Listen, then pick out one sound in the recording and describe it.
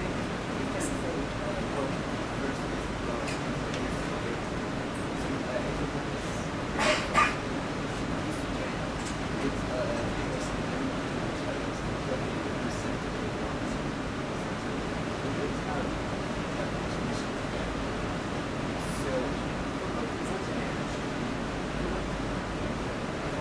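A young woman speaks calmly through a microphone in an echoing hall.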